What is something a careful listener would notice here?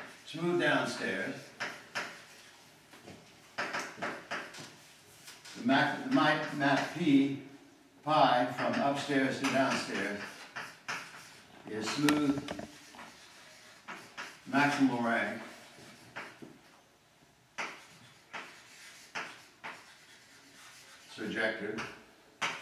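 An elderly man speaks calmly, as if lecturing, in a room with some echo.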